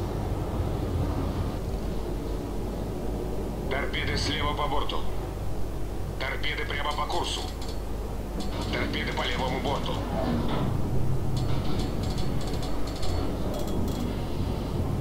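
Waves wash and churn around a moving ship.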